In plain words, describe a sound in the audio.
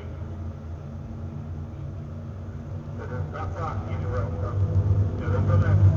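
A car engine idles nearby with a low, steady rumble that grows louder toward the end.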